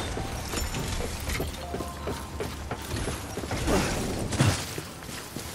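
Footsteps tread on a hard metal platform.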